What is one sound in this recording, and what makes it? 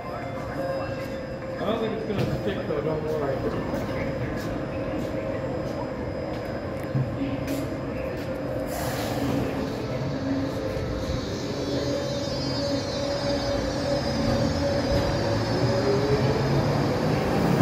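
A subway train rumbles and hums as it pulls slowly along a platform, picking up speed.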